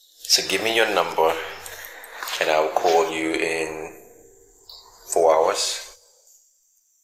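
A man speaks nearby with feeling.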